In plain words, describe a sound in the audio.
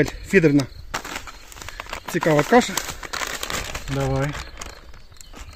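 A plastic bag crinkles in a man's hands.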